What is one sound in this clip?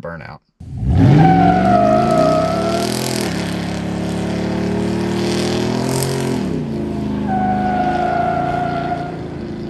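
A pickup truck engine revs hard and roars close by.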